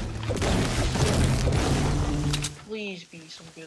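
A pickaxe strikes a tree with loud, rapid chops.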